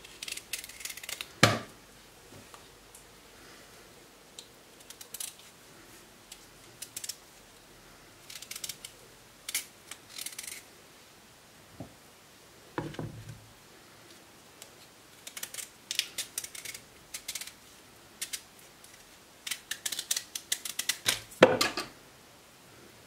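A knife scrapes and shaves the peel off a firm root vegetable.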